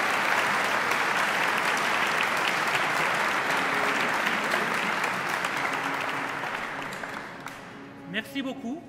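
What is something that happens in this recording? An audience applauds loudly in a large echoing hall, then the applause fades.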